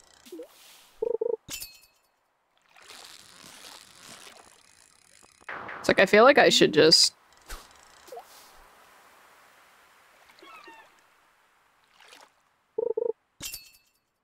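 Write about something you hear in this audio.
A fishing game plays a short chime as a fish bites.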